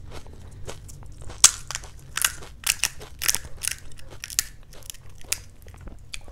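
Crisp hollow shells crack and crunch as they are handled close up.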